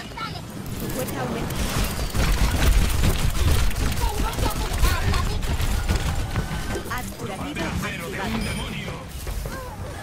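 Game explosions and impacts thump heavily.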